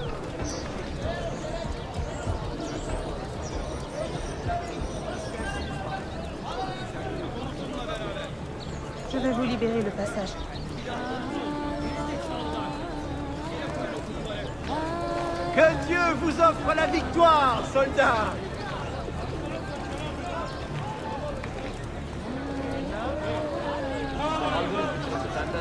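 A crowd of men and women murmurs and chatters all around.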